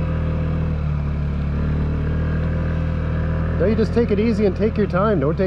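An off-road vehicle's engine hums steadily up close.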